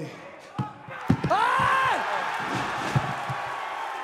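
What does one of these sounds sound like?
A body slams hard onto the ring mat.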